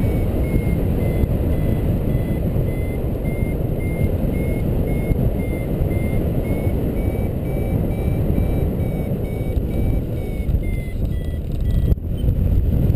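A flight instrument beeps in a steady series of short tones.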